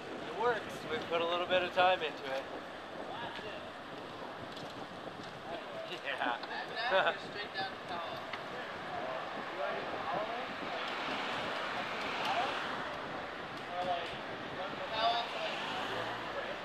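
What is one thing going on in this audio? Young men talk and call out to each other nearby.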